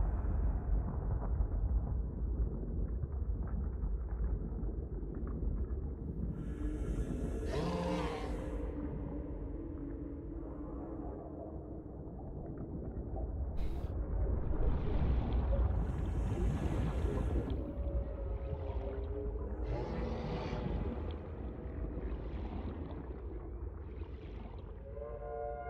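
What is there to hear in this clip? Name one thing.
Deep water rumbles low and muffled all around.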